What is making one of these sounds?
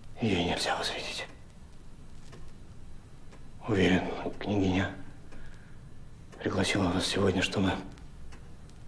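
A young man speaks quietly and tensely nearby.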